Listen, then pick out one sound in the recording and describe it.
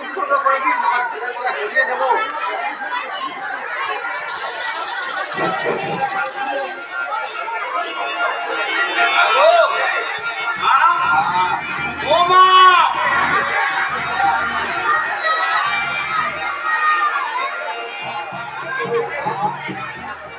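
Performers on a stage sing and speak through loudspeakers, echoing in a large space.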